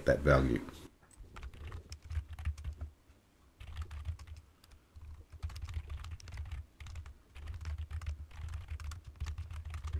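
Keys click quickly on a keyboard.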